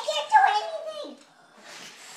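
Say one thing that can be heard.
A young girl speaks excitedly close by.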